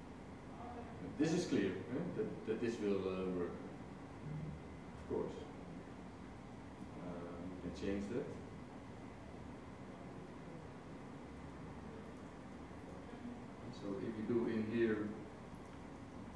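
A man speaks calmly into a microphone in a large room, in short bursts with pauses.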